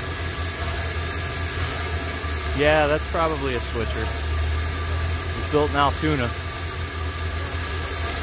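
A steam locomotive rumbles steadily close by.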